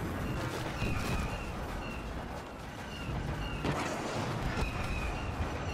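Blaster rifles fire in sharp bursts.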